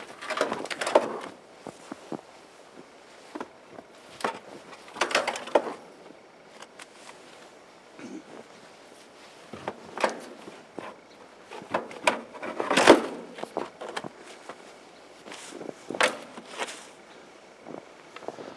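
A shovel scrapes and scoops snow.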